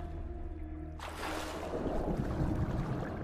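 A body plunges into water with a loud splash.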